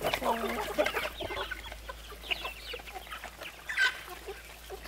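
Chickens cluck and scratch nearby.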